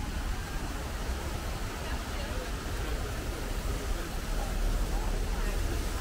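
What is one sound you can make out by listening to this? Fountains splash and gush steadily.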